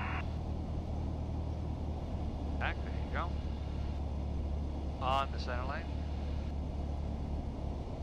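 A small plane's propeller engine drones steadily.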